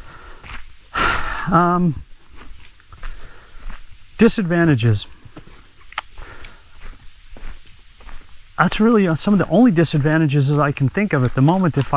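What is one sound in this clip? A middle-aged man talks calmly and close by, in bursts with pauses.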